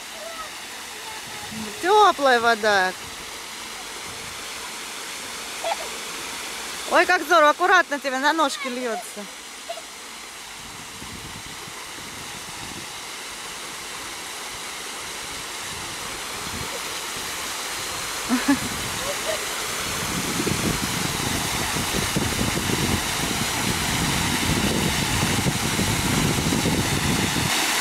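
Small fountain jets spurt and splash onto a metal grate.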